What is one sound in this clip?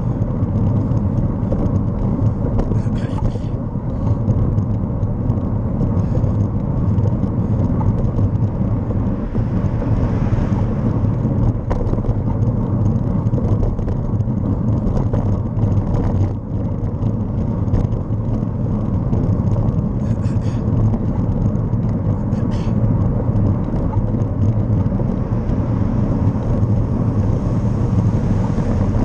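Wind rumbles loudly past a moving vehicle.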